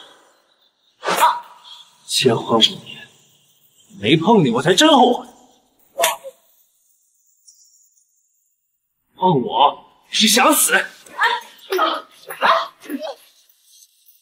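A young man speaks in a low, taunting voice close by.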